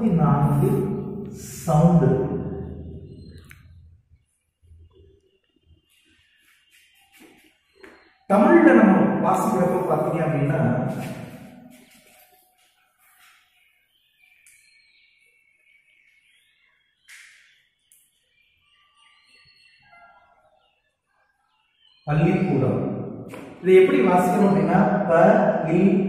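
A man speaks loudly and calmly, as if teaching, in an echoing room.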